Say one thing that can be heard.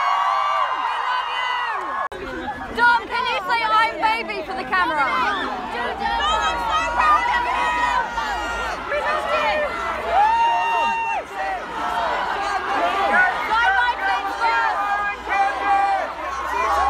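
A crowd of young women screams and shouts excitedly close by.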